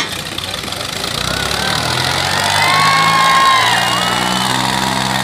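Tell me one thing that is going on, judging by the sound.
Tractor engines rev up higher.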